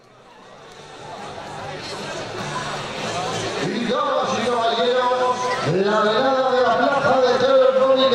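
A man speaks through a loudspeaker outdoors.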